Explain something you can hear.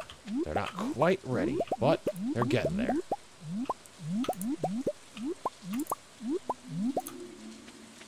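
Quick rising pops sound again and again as crops are picked in a game.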